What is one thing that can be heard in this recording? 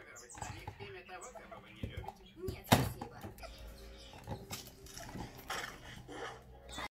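A rubber toy squeaks as a small animal bites and drags it.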